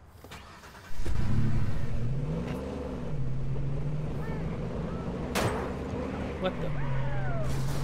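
A pickup truck's engine starts and revs as the truck drives off.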